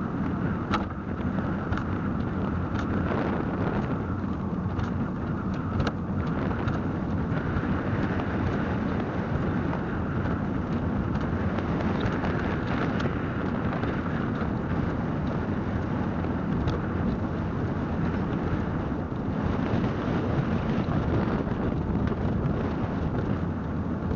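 Tyres rumble over rough pavement with small bumps and knocks.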